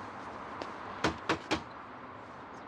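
Knocks sound on a wooden door.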